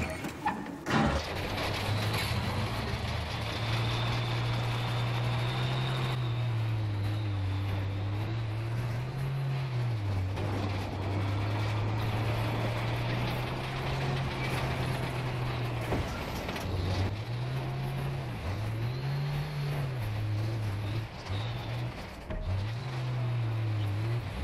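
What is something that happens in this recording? A heavy tank engine rumbles and revs as the tank drives.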